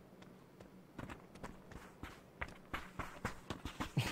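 Footsteps crunch quickly over dry dirt.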